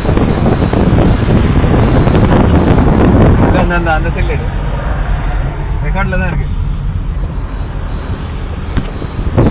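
A car engine hums and tyres rumble on the road while driving.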